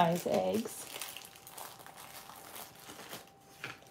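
Paper rustles softly as a hand picks up cutouts.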